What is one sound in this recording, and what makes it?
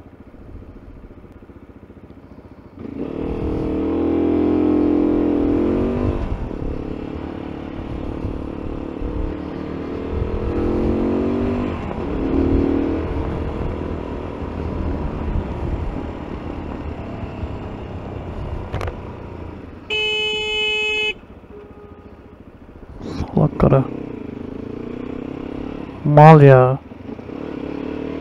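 A motorcycle engine idles and then revs as the bike pulls away and rides on.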